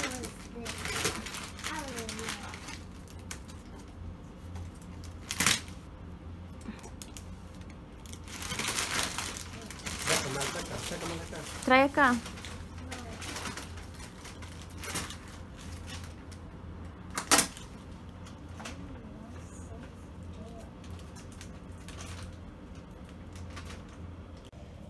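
Wrapping paper rustles and crinkles as a child tears at a gift.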